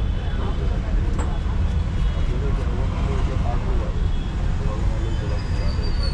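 A knife scrapes and taps against a metal bowl.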